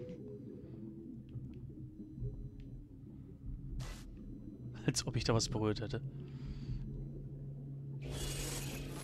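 Water gurgles and rushes, muffled as if heard underwater.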